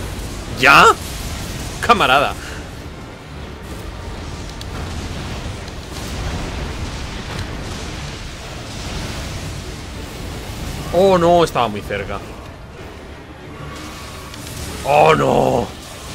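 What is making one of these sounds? Lightning crackles and booms in a loud fight.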